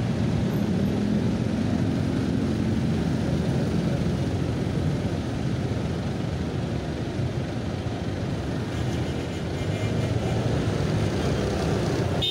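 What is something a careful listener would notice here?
Motorcycle engines idle and rumble close by in traffic.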